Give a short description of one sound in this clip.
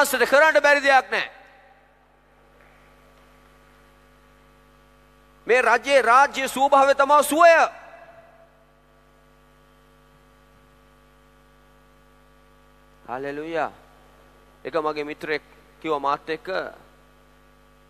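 A man preaches with animation through a microphone in a large echoing hall, in short bursts with pauses.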